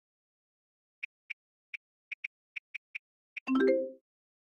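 Soft key taps click one after another in quick succession.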